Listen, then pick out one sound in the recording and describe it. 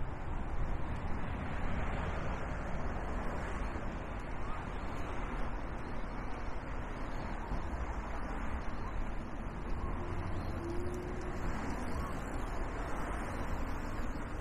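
Wind rumbles steadily past the microphone.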